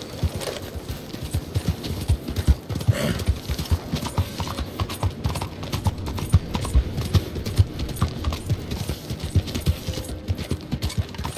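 A horse gallops with rapid, heavy hoofbeats on a dirt road.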